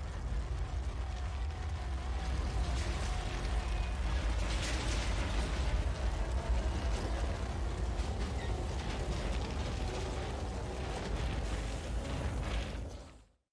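A heavy vehicle engine rumbles deeply as it rolls past.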